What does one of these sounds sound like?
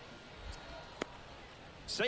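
A baseball smacks into a glove.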